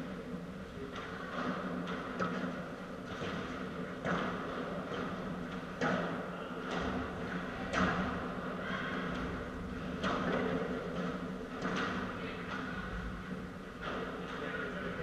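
Padel rackets strike a ball back and forth in a large echoing hall.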